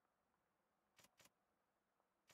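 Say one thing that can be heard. Short soft clicks sound as a menu cursor moves.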